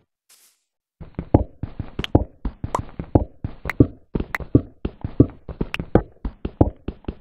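A pickaxe chips rapidly at stone.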